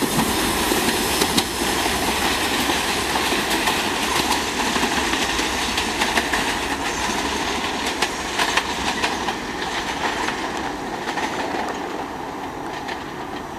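A subway train rumbles and rattles away along the tracks, slowly fading.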